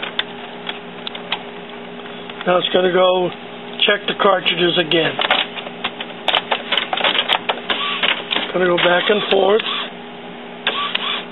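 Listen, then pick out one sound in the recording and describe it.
A printer's mechanism clicks and clatters inside its casing.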